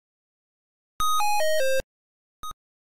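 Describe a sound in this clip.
A quick run of falling electronic beeps sounds as pins are knocked down.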